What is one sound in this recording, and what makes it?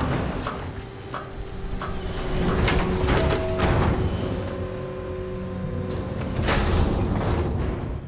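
A heavy metal door hisses and rumbles open.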